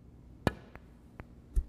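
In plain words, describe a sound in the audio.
Snooker balls clack against each other.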